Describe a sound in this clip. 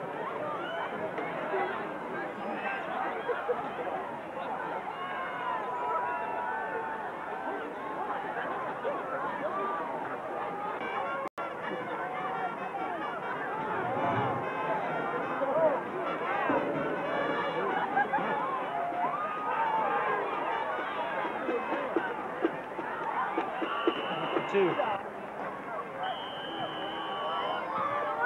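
A large outdoor crowd chatters and murmurs steadily.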